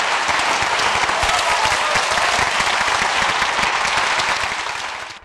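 A large audience applauds loudly in an echoing hall, then the applause fades.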